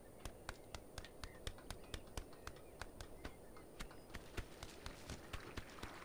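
A goose's webbed feet slap quickly on stone.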